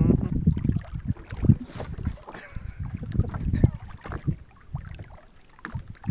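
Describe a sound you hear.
Water splashes beside a boat.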